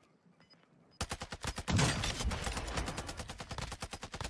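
An assault rifle fires in rapid automatic bursts.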